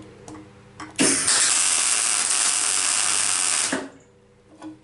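A MIG welder crackles and sputters as it lays a weld bead.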